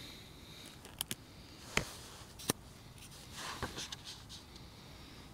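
Paper pages rustle as they are turned.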